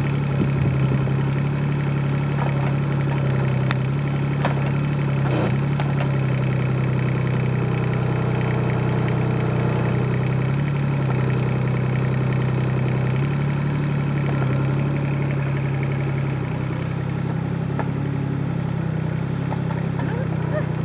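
A digger bucket scrapes and knocks through soil.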